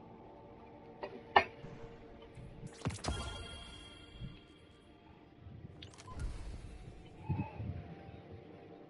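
Game menu sounds click and swoosh.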